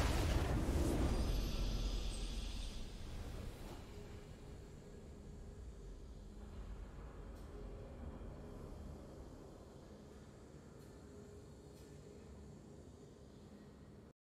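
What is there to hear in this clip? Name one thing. A triumphant game fanfare plays softly.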